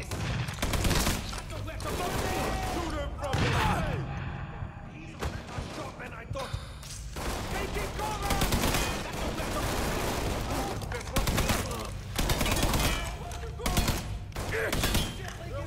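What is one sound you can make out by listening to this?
Rifles fire in rapid bursts of loud shots.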